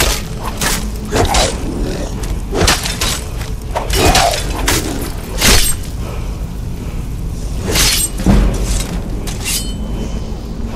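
Fire spells roar and crackle in bursts.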